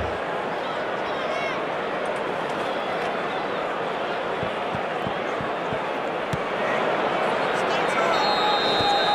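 A large stadium crowd roars steadily, growing louder toward the end.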